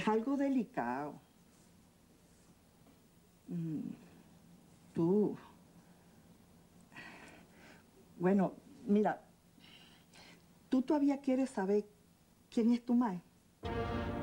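An elderly woman speaks with animation close by.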